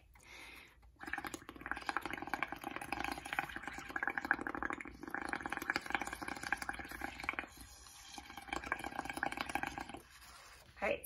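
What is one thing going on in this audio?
Air bubbles gurgle rapidly through liquid blown by a straw.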